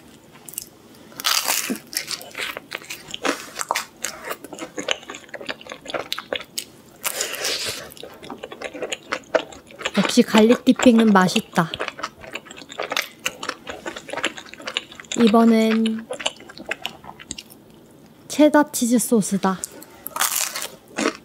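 A young woman chews and munches crunchy food close to a microphone.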